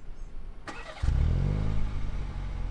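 A sports car engine starts up with a loud roar.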